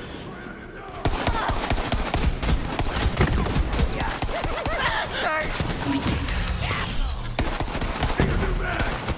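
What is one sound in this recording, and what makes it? A heavy gun fires in fast, rattling bursts.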